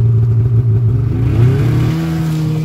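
A snowmobile engine revs up, its pitch rising, then holds a higher whine.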